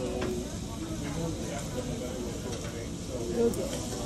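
Chopsticks tap against a bowl of soup.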